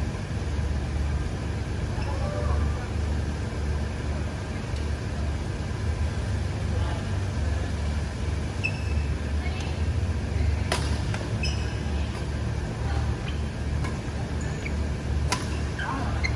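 A low steady hum of fans fills the hall.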